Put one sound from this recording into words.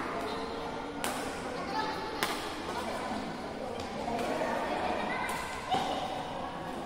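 Shuttlecocks are struck with sharp racket pops in a large echoing hall.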